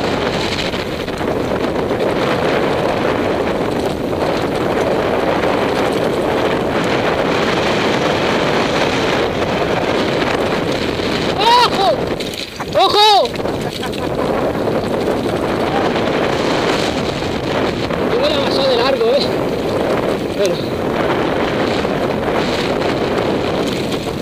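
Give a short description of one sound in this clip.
Wind rushes loudly past the microphone outdoors.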